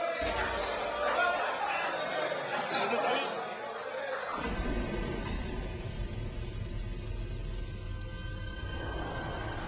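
Showers spray water onto a tiled floor.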